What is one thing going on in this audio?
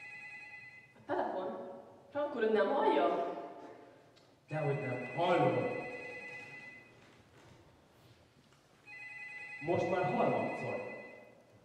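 A young man speaks with feeling on a stage in an echoing hall.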